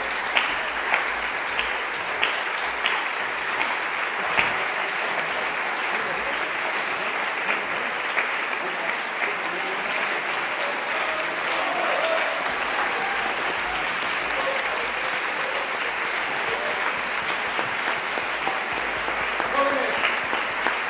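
A small orchestra plays in a large, echoing hall.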